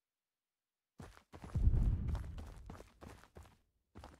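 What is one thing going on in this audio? Footsteps thud as a character runs over a hard floor.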